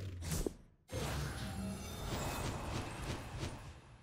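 A card reveal plays with a loud shimmering whoosh.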